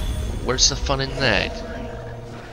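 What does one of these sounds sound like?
A magic blast bursts with a bright whoosh.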